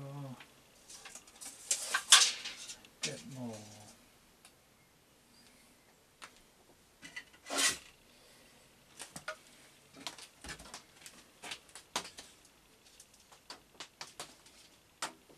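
Metal tools clink and knock on a workbench.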